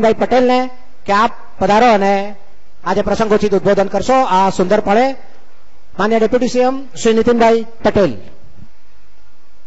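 A man speaks with animation over a loudspeaker in a large echoing space.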